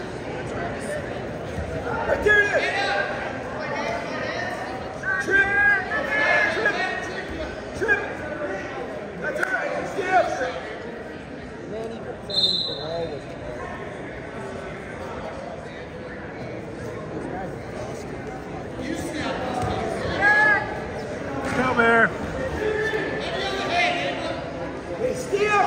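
Wrestlers' shoes scuff and thump on a mat.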